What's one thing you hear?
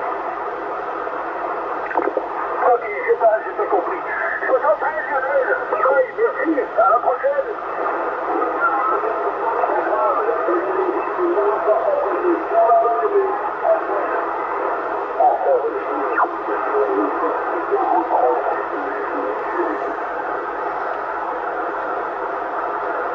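Radio static hisses steadily from a loudspeaker.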